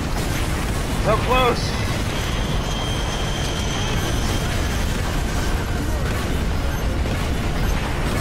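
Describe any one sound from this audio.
Rockets whoosh from a launcher.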